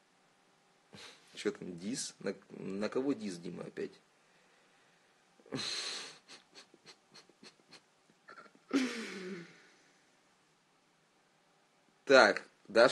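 A young man talks casually and close to a phone microphone.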